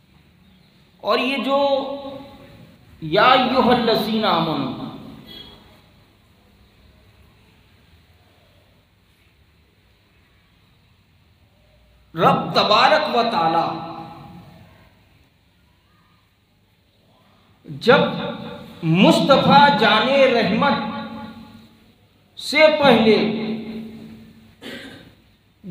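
A man speaks calmly into a microphone, heard through a loudspeaker in an echoing room, with long pauses.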